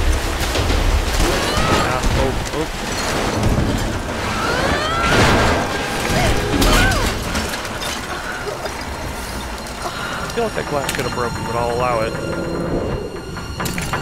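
Metal wreckage creaks and crashes.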